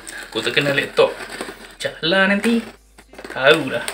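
A knife slices through packing tape on a cardboard box.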